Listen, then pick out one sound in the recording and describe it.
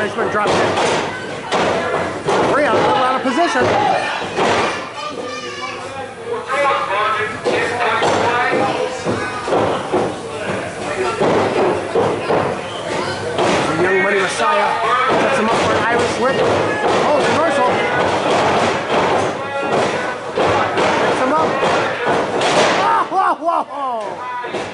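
A crowd cheers and shouts loudly in an echoing hall.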